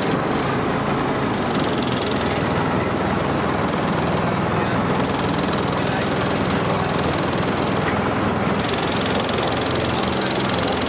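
Water churns and sloshes loudly close by.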